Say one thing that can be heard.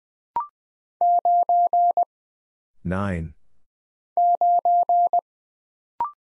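A Morse code key taps out a series of steady beeps.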